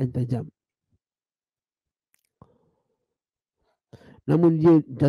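A man speaks calmly into a close microphone, reading out.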